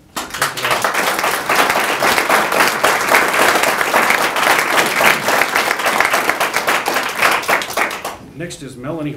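A crowd claps and applauds loudly.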